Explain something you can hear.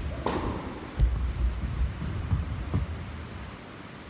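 Footsteps scuff and thud on a hard court.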